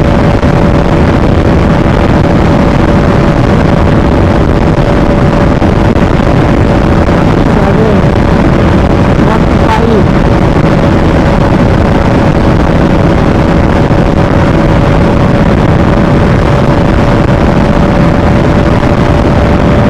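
A sport motorcycle engine drones at cruising speed.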